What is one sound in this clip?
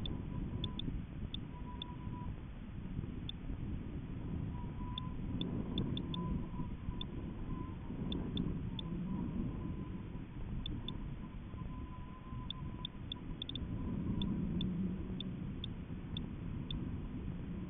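Wind rumbles and buffets against the microphone throughout.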